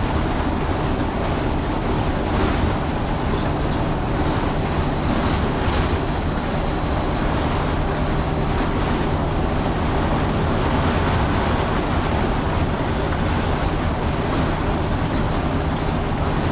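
Tyres roar on a highway road surface.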